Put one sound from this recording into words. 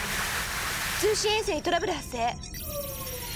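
A young woman speaks briskly.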